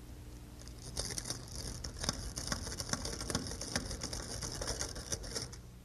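A metal tool scrapes and taps against a door latch plate.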